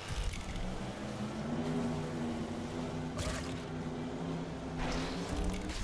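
Water splashes and sprays.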